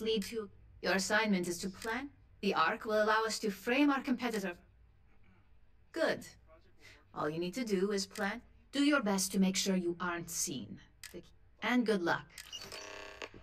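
A woman speaks calmly, close and clear.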